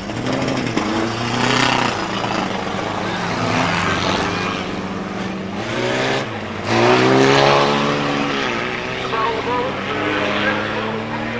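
Car engines roar and rev.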